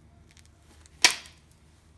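An antler knocks once against a hard object.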